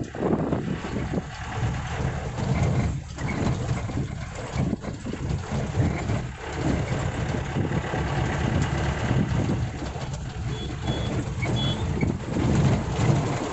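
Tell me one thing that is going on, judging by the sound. An old vehicle's engine rumbles steadily from inside the cab.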